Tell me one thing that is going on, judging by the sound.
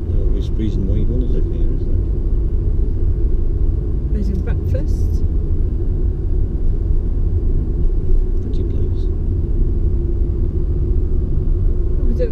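Tyres roll and rumble on a wet road.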